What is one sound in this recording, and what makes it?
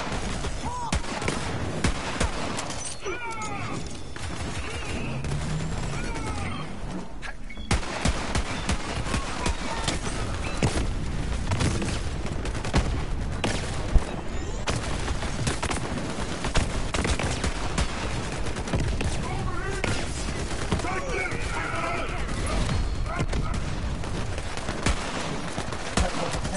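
Rapid gunfire crackles and bangs throughout.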